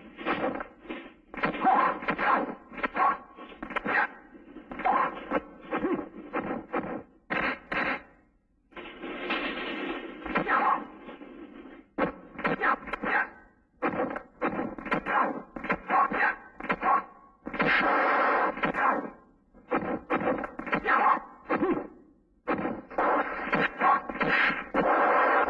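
Men grunt and shout while fighting up close.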